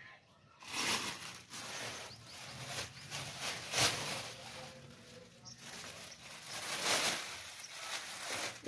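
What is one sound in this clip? Plastic rustles and crinkles close by.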